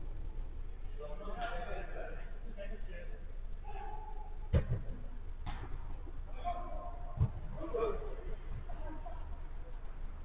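Young men call out to each other from a distance, with a slight echo.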